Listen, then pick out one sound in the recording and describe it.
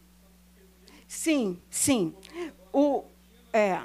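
A woman speaks loudly and with animation from the audience.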